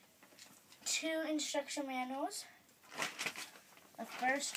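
Paper and cardboard packaging rustle and crinkle.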